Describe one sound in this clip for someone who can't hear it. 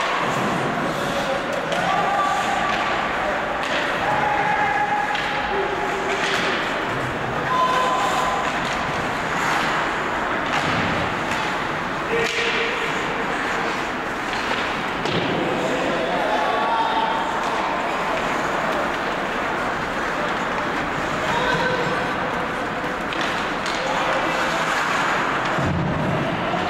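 Spectators shout and cheer in a large echoing arena.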